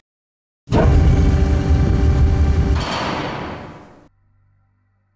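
A heavy metal door slides open with a deep, loud rumble that fades away.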